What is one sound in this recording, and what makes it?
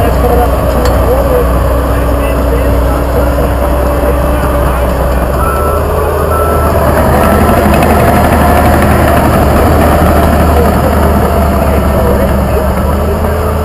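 A bulldozer engine rumbles steadily close by.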